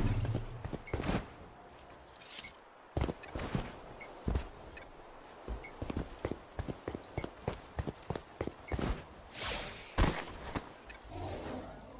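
Footsteps crunch quickly over rubble and dirt.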